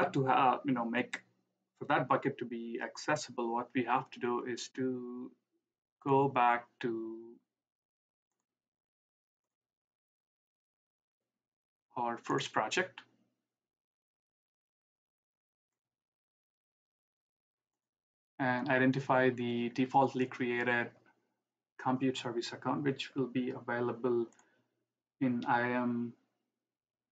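A man speaks calmly and explains, close to a microphone, with pauses.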